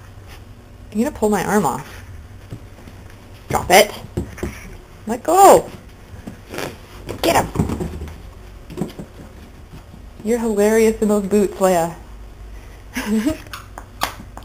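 A squeaky rubber toy squeaks loudly again and again as a small dog bites it.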